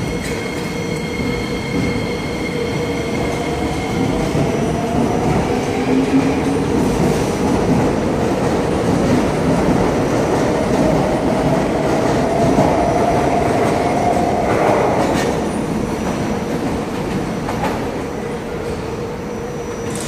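Wheels of an electric metro train rumble on the rails and fade into the distance.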